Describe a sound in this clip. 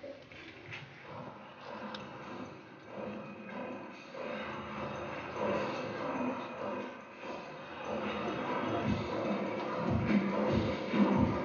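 Children murmur and chatter quietly.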